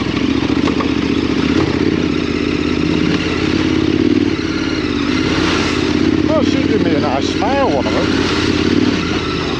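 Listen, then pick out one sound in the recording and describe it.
Tyres squelch and splash through mud and puddles.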